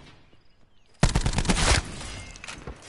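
Gunfire rattles in a loud rapid burst.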